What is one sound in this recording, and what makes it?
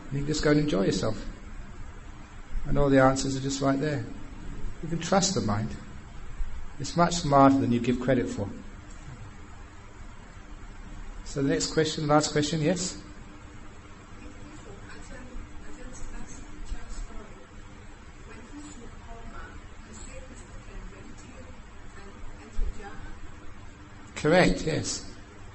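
A man speaks calmly, with long pauses.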